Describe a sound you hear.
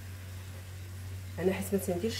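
A hand rustles and tosses shredded vegetables in a frying pan.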